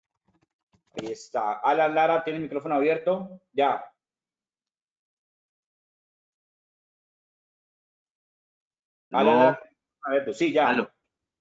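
A man speaks calmly over an online call, in short bursts.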